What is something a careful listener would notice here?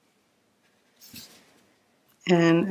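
A pencil scratches along a ruler on paper.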